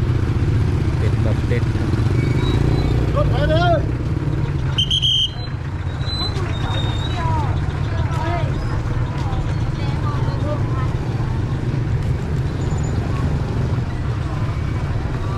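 Motorbike engines hum and putter along a busy street.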